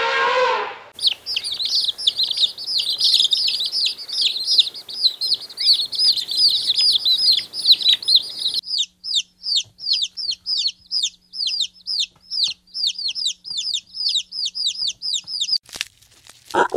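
Chicks peep rapidly and shrilly.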